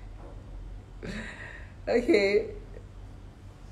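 A woman laughs briefly close by.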